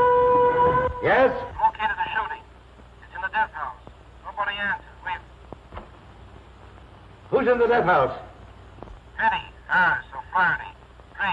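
An elderly man speaks intently and firmly, with pauses.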